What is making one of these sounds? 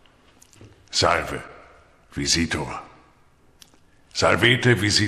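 A man speaks calmly in an echoing room.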